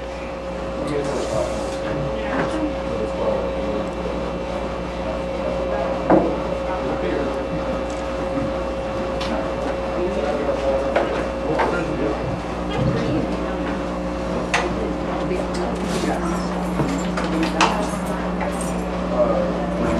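A saxophone plays.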